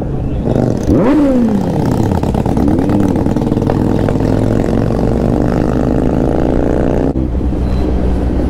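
A motorcycle engine revs and roars up close.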